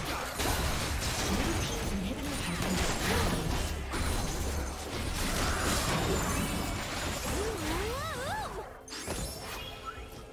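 Video game spells blast and crackle during a hectic fight.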